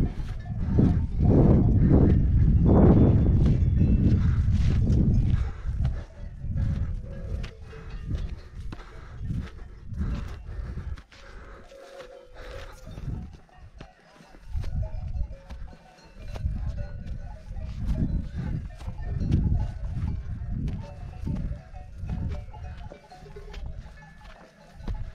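Footsteps crunch and scuff on a dirt trail.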